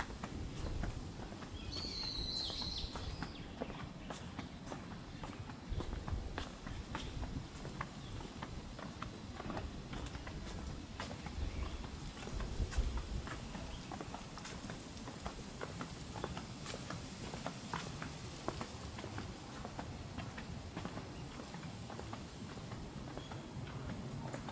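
Footsteps tap steadily on stone paving.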